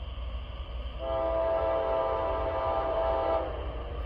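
A train horn blows loudly in a long, steady blast from a distance.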